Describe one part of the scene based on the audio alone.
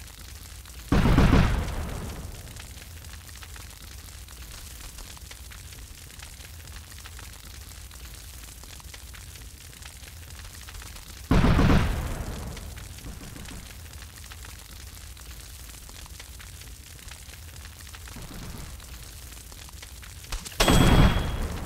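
Loud explosions boom and rumble away.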